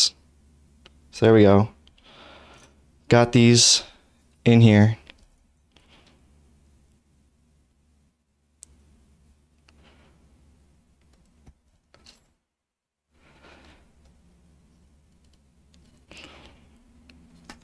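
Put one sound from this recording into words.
Small metal pins click against a circuit board.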